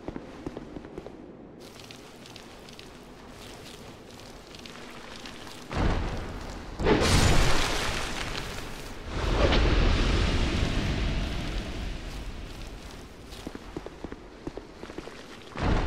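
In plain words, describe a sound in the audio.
Footsteps crunch on stone.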